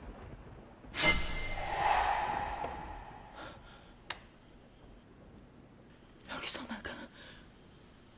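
A young woman gasps and whimpers in distress.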